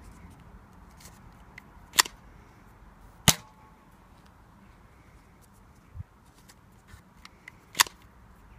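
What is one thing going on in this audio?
A toy dart blaster's slide clicks as it is cocked.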